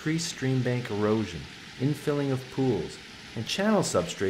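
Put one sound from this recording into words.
A small stream trickles and babbles over rocks.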